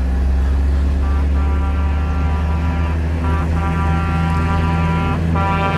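A truck horn blares in long blasts.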